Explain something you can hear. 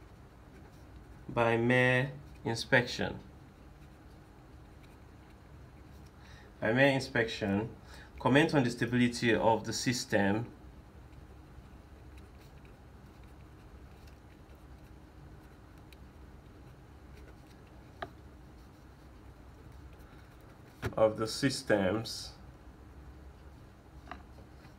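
A felt-tip marker squeaks and scratches softly across paper.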